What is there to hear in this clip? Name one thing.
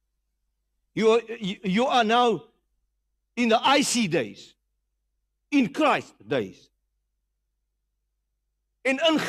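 A man speaks with animation through a microphone, in short bursts.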